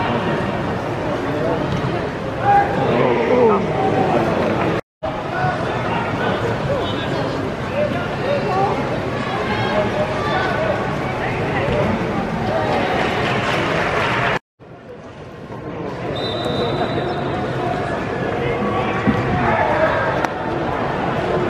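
Men on a football pitch shout and call to each other across a large open ground.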